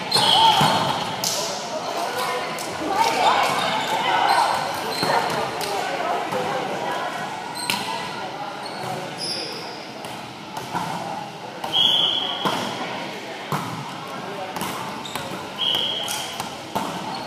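Balls thud and bounce on a wooden floor.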